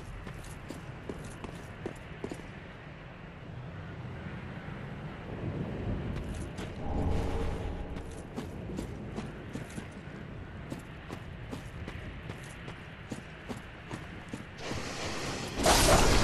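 Armored footsteps clink and thud on the ground at a steady pace.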